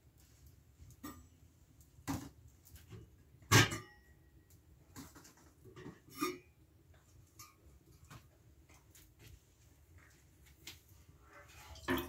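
Metal pieces clink and knock.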